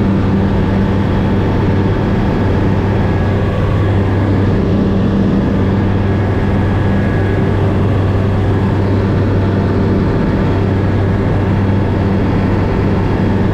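A small propeller plane's engine drones loudly and steadily from inside the cabin.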